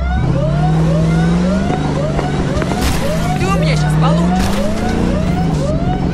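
Car tyres screech as the car skids sideways.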